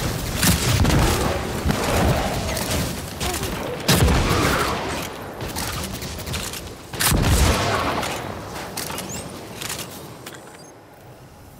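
Gunshots and explosions boom in a video game battle.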